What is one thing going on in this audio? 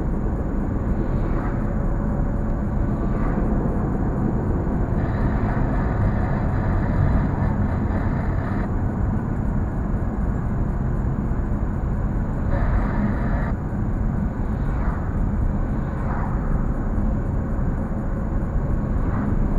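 A car engine hums steadily as it drives along a road, heard from inside.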